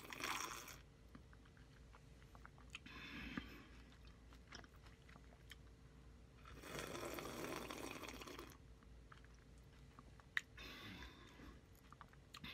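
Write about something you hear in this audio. A woman slurps and gulps a drink close to a microphone, in short bursts.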